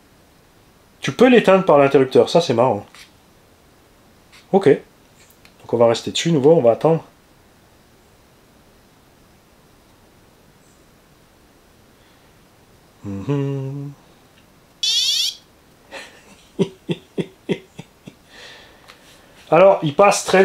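A man speaks calmly close to a microphone, in short bursts with pauses.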